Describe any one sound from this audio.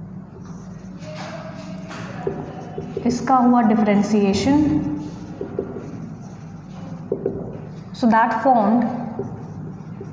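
A young woman speaks calmly, explaining, close by.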